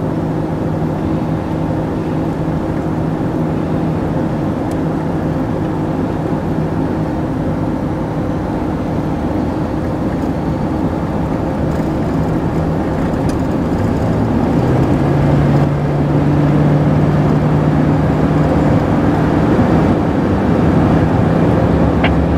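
A locomotive engine rumbles nearby, growing louder as the car passes it.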